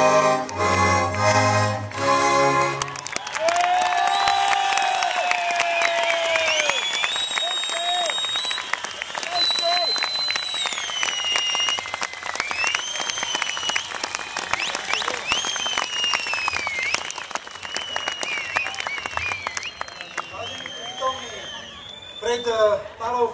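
A small folk band plays a lively tune on stage.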